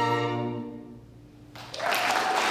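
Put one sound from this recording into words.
A string quartet plays a final chord that rings out and fades away.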